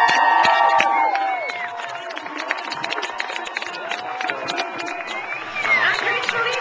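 Spectators clap their hands rapidly.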